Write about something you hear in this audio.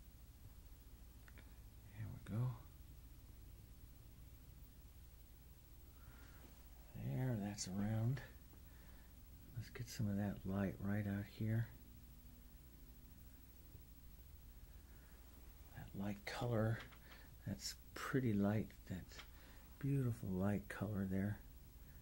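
A paintbrush softly dabs and strokes paint onto a canvas.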